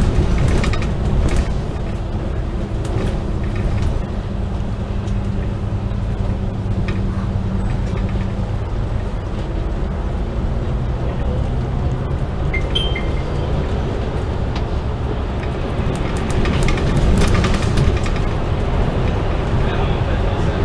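Road and traffic noise rushes past outside a bus.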